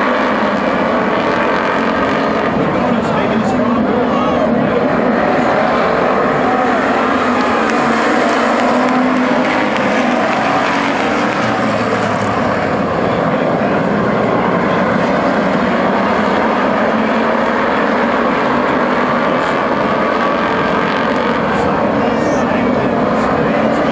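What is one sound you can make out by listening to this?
Race car engines roar loudly as cars speed around a dirt track.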